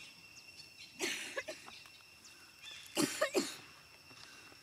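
A young monkey squeals briefly.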